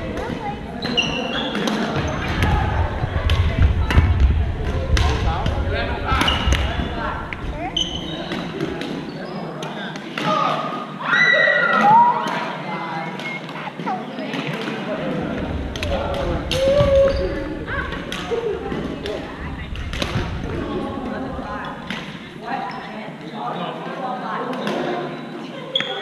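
Men and women talk and call out across an echoing hall.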